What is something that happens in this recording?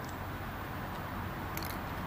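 A metal cup clinks softly against a hard surface.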